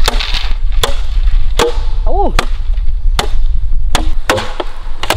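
A machete chops sharply into bamboo.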